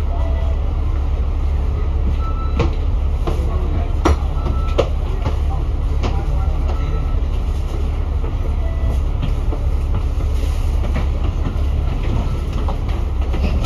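Car engines hum as cars drive past close by.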